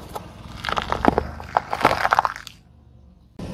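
A car tyre crushes peppers with wet crunching and popping.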